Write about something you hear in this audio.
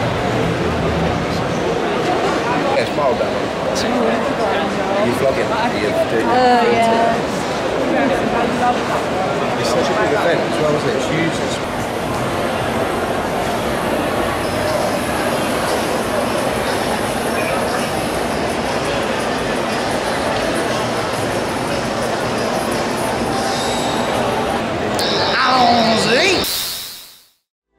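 A crowd chatters all around in a large, echoing hall.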